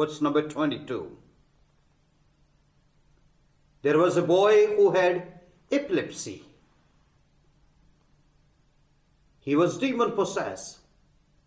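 A man speaks calmly and clearly into a close microphone, pausing between phrases.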